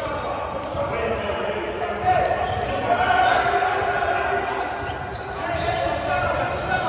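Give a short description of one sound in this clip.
Men call out to each other in a large echoing hall.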